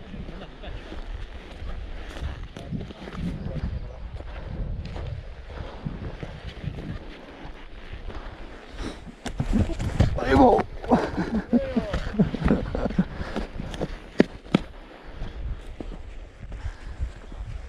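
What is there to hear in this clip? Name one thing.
Boots crunch over gravel and brush at a steady walking pace.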